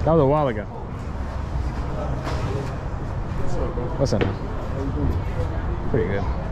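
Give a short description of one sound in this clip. Adults talk quietly a short way off, outdoors.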